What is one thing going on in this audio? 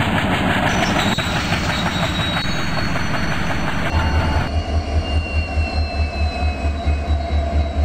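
A train's brakes squeal as it slows down.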